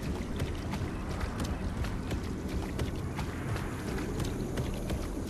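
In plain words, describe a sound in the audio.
Heavy footsteps thud quickly on the ground.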